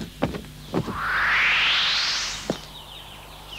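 A quick rising whoosh sweeps past as a bird darts away.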